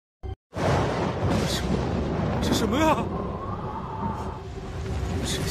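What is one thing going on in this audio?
Wind howls through a rocky canyon.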